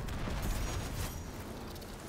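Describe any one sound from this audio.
Energy weapons fire in short bursts.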